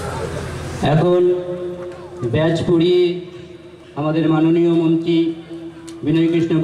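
A man speaks into a microphone, heard loudly through a loudspeaker in an echoing hall.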